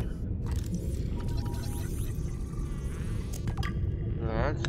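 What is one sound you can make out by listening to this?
A scanner hums and crackles electrically.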